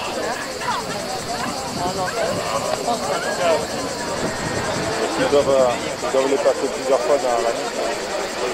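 A crowd of young men and women shouts and cheers outdoors.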